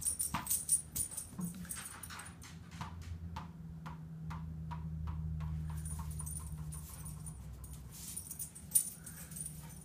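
Dog paws patter and scamper across a carpeted floor.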